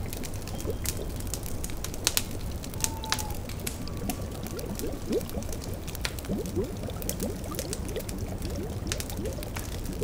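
A fire crackles and pops.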